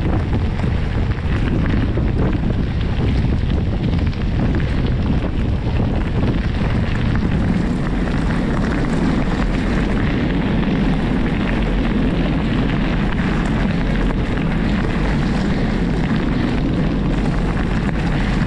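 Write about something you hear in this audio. Bicycle tyres crunch and rumble over gravel.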